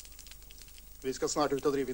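A man speaks firmly, close by.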